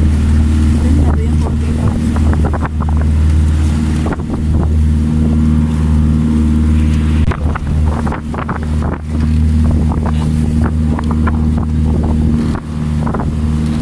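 Young men and women chat nearby over the engine.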